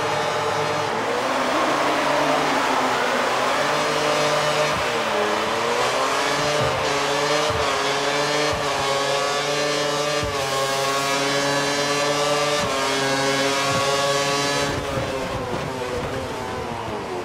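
A Formula One race car engine screams as it accelerates, shifting up through the gears.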